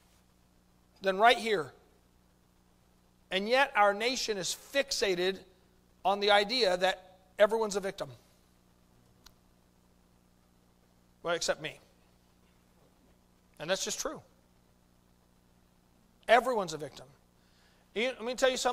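A middle-aged man preaches with animation through a microphone, in short bursts with long pauses.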